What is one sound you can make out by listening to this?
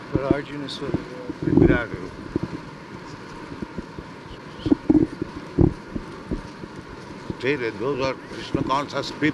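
An elderly man speaks into a microphone in short bursts with pauses.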